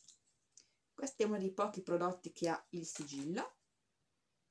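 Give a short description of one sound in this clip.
A young woman speaks calmly close to a microphone.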